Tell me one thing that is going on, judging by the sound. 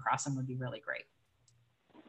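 A woman speaks briefly over an online call.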